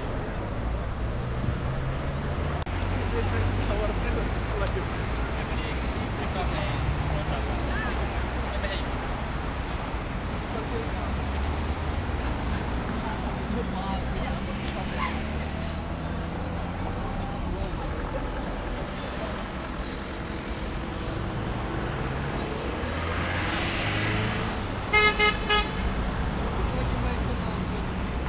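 Several people talk in the background.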